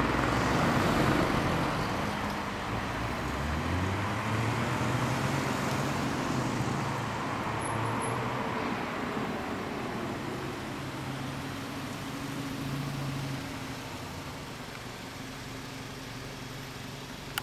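Car engines hum steadily in slow street traffic.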